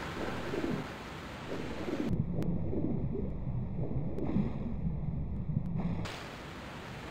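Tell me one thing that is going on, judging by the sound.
Water splashes and churns as a swimmer moves through it.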